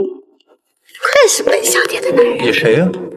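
A young woman speaks playfully and laughs close by.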